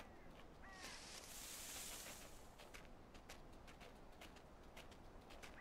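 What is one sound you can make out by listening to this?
Small paws patter quickly through rustling grass.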